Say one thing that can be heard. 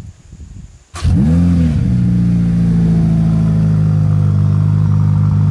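A sports car engine starts with a roar and then idles with a deep, loud rumble.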